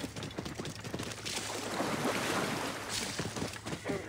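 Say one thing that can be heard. Hooves splash through shallow water.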